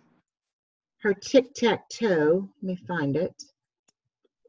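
A middle-aged woman speaks with animation over an online call.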